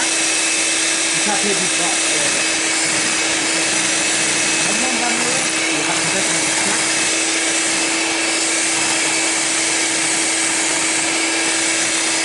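An electric hand mixer whirs steadily, beating a thick batter in a bowl.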